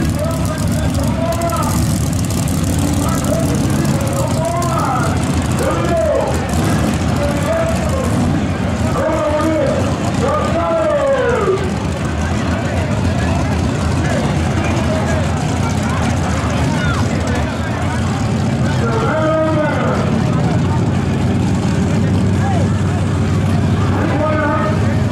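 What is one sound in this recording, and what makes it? A race car engine revs up and down in short bursts.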